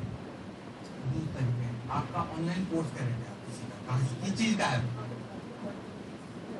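A man speaks to an audience through a microphone.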